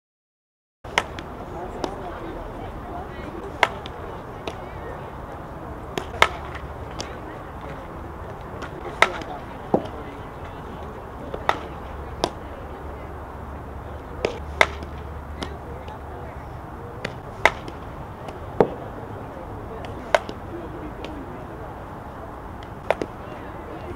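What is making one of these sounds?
A softball smacks into a leather glove again and again.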